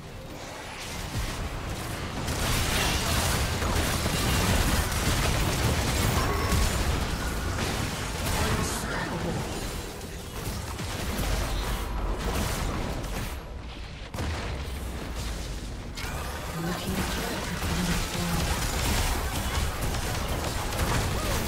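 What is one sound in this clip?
Magic spells whoosh and crash in a fast video game battle.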